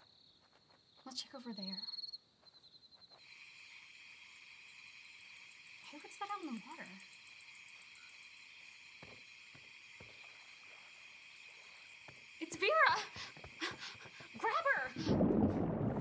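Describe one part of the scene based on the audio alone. A young woman talks quietly outdoors at night.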